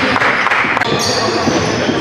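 A basketball is dribbled on a hardwood floor.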